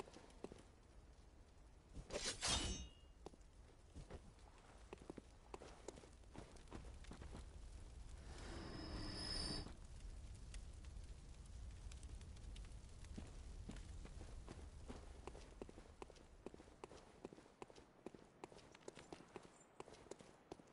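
Footsteps tap quickly on stone steps.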